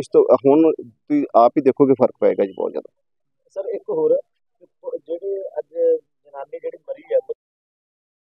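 A middle-aged man speaks calmly and firmly into a microphone close by.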